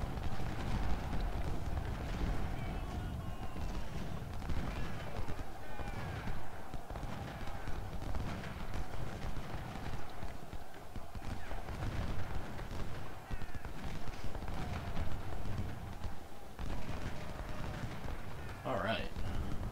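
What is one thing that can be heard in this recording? Cannons boom and rumble low.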